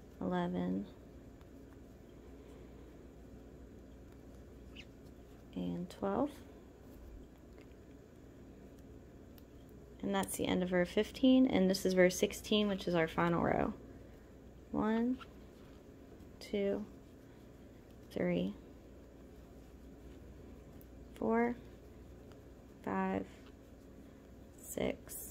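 A crochet hook softly scrapes and pulls through yarn.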